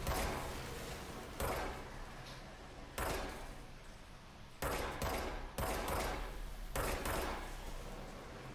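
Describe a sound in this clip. A pistol fires single shots that boom and echo.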